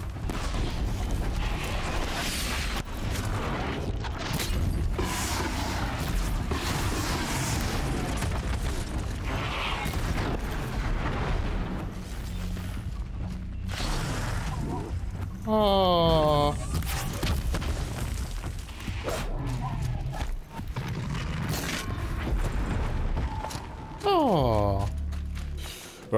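Game combat sounds with impacts and blasts play throughout.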